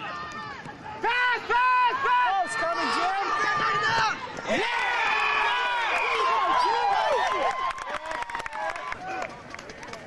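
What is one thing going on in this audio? Young men and women shout and cheer excitedly close by, outdoors.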